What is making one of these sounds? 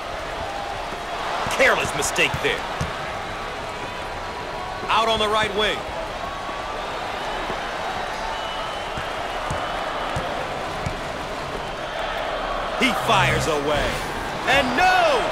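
A crowd murmurs and cheers steadily.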